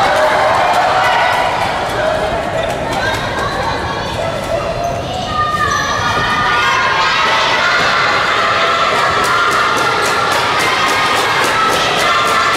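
A crowd cheers and chants loudly in a large echoing hall.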